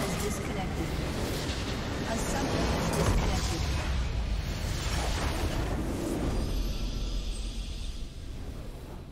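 A loud rumbling explosion roars and crackles.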